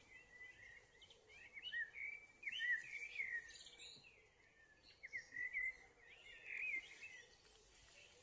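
A small bird sings in quick, scratchy warbling bursts close by.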